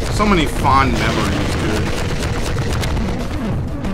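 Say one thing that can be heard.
A rocket explodes with a loud boom.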